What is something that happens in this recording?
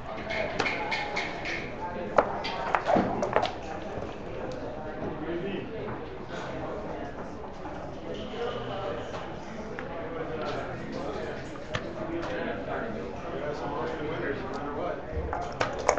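Plastic checkers click and slide on a wooden board.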